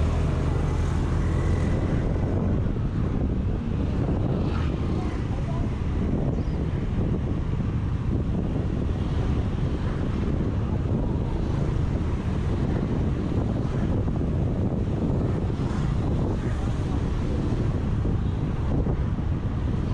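A scooter engine hums steadily up close while riding.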